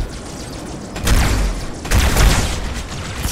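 A plasma weapon fires in rapid crackling bursts.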